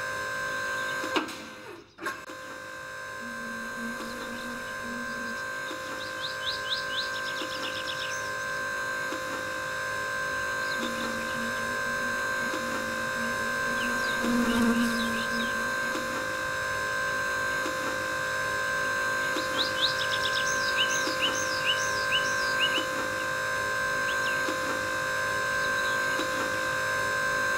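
A fuel nozzle pours fuel into a tank with a steady hum.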